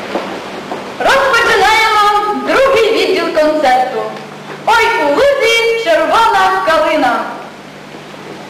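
A young woman sings a loud, clear solo close by.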